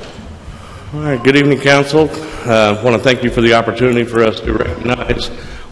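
A man speaks into a microphone from a podium.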